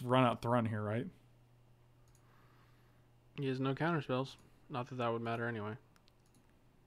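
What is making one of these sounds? A man talks with animation through a close microphone.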